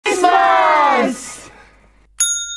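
A group of men and women shout a cheerful greeting together.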